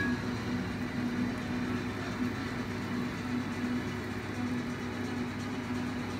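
Liquid pours into a metal pan.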